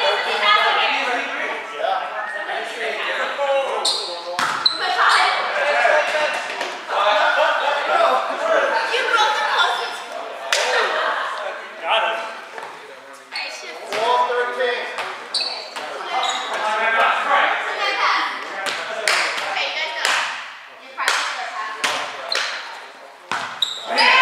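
Many young men and women chatter and call out in a large echoing gym.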